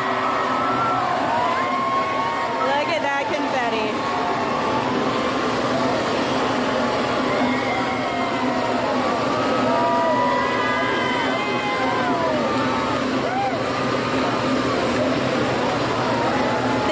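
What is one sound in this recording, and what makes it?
A large crowd cheers, whoops and shouts outdoors.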